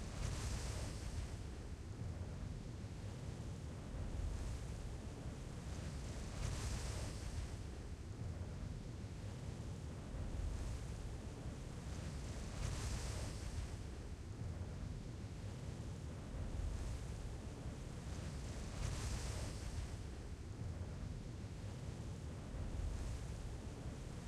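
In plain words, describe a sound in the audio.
Wind rushes past during a parachute descent.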